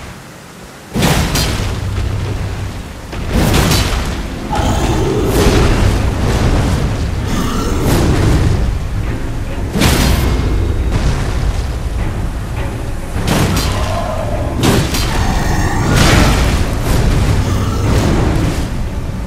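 A sword slashes with sharp swishes.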